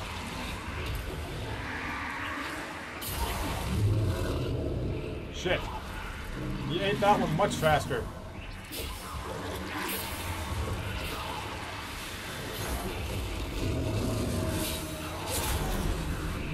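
Blades clash and slash.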